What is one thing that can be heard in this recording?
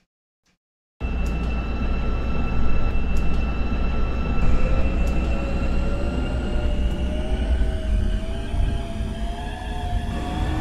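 A train's electric motor hums and whines, rising in pitch as the train speeds up.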